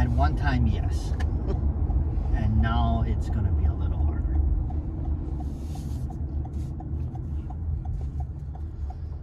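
A car engine hums low and steady with road rumble from inside the car.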